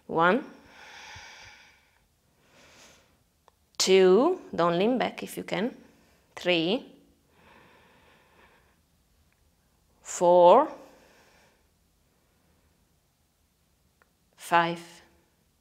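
A young woman speaks calmly and softly, close by, with pauses between phrases.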